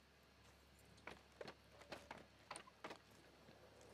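Footsteps knock on a wooden ladder.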